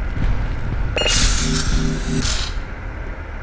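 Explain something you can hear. A medical dispenser buzzes briefly.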